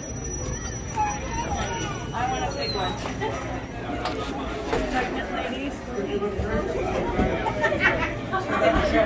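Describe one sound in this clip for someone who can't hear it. A crowd of men and women chatters nearby indoors.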